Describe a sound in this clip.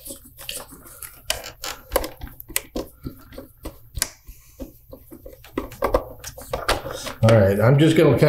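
A screwdriver clicks and scrapes against plastic parts.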